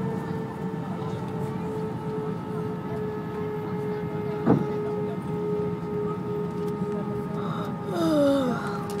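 The engines of a jet airliner hum steadily, heard from inside the cabin as it taxis.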